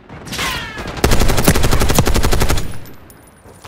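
An assault rifle fires a rapid, loud burst of shots.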